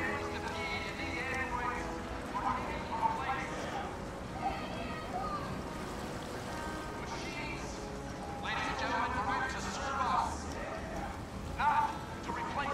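A fountain splashes steadily.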